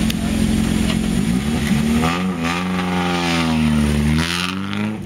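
A rally car engine idles loudly nearby and revs up and down.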